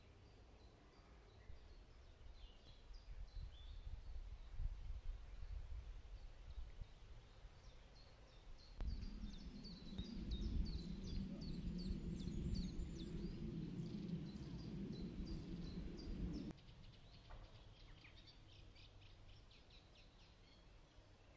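Wind rustles through the trees outdoors.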